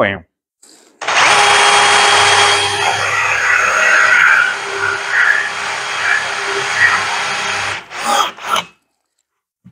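A power drill whirs as a hole saw cuts into wood.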